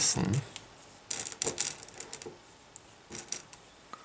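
Jelly beans rattle and clatter as a hand rummages through a glass bowl.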